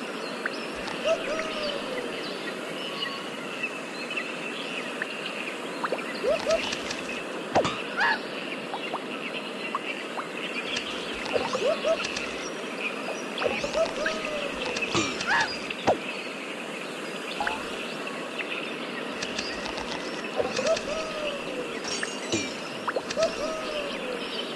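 A cartoon monkey cries out in short whoops as it swings.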